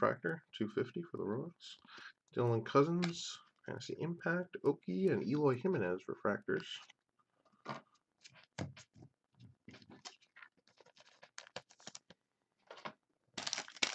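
Trading cards slide and flick against each other in a hand.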